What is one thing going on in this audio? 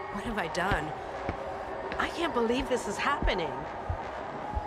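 A woman speaks warmly with a smile.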